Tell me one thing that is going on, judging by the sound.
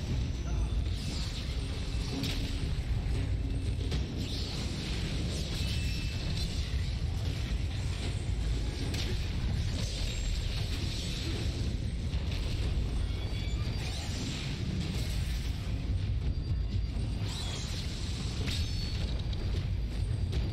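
A fire roars steadily with a low rumble.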